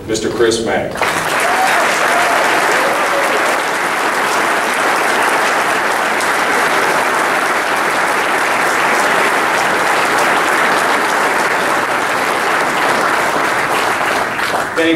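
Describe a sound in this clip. A crowd applauds steadily in a large room.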